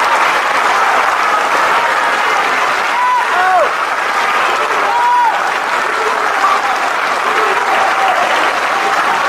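A large crowd talks and shouts loudly in an echoing hall.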